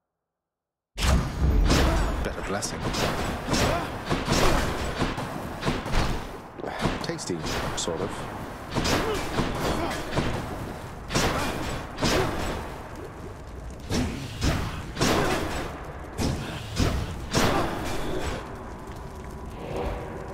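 Magic blasts and hits ring out in quick bursts.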